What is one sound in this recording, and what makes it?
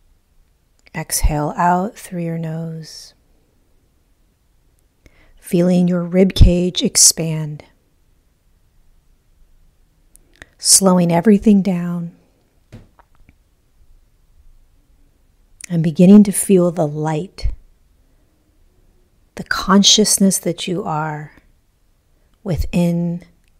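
A woman speaks slowly and calmly into a close microphone, with long pauses.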